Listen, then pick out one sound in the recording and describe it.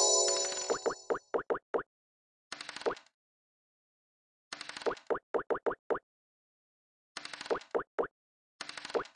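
Game pieces hop with quick bright blips.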